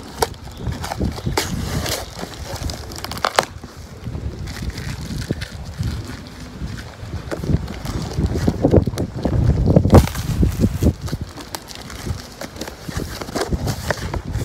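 Cardboard flaps scrape and rustle as hands open a box.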